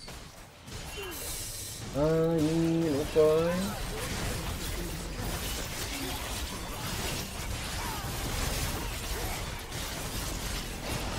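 Video game battle effects clash, whoosh and crackle.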